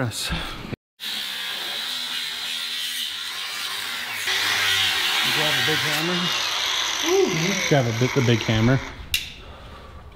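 An angle grinder whines as it cuts metal.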